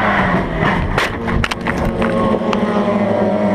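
A car body crashes and thuds as it rolls over.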